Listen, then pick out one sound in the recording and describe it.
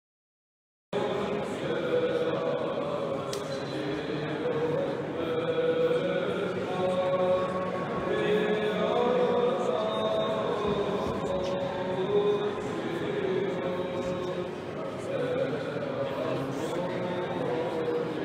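People murmur in a large echoing hall.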